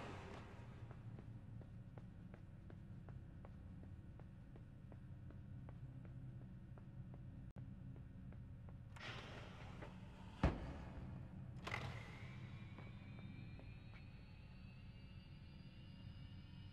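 Small footsteps patter quickly across a hard floor in a large echoing hall.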